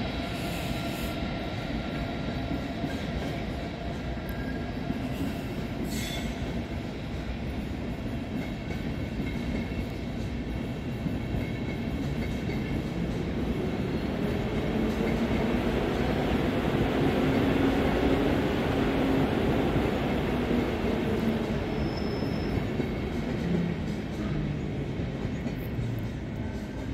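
A long passenger train rolls slowly out along the tracks, its wheels rumbling and clattering.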